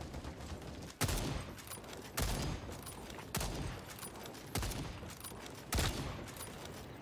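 A rifle fires loud single shots at a steady pace, each shot booming and echoing.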